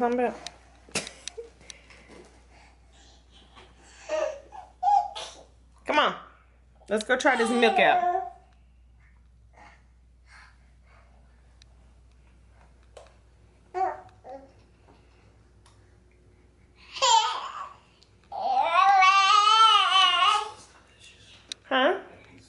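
A toddler babbles and squeals nearby.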